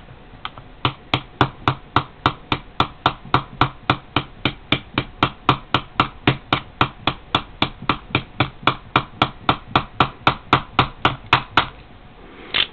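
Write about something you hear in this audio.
A plastic pen tip taps rapidly and steadily on a phone's glass surface.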